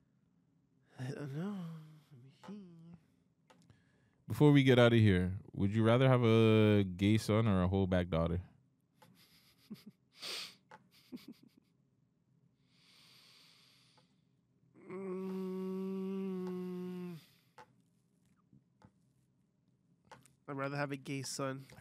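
A second man speaks calmly close to a microphone.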